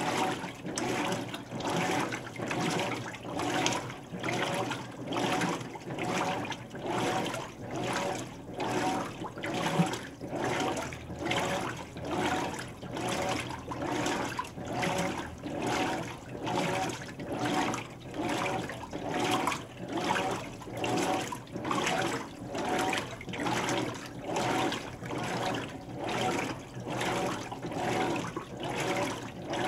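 Water sloshes and churns in a washing machine in a steady, rhythmic back-and-forth.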